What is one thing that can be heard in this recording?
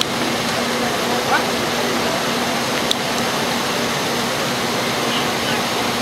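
A fire pump engine drones steadily.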